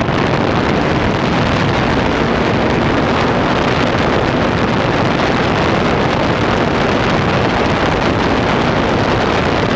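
Wind roars steadily past a small aircraft.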